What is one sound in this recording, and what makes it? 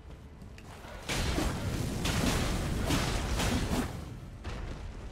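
A large winged creature flaps its wings with a heavy rushing noise.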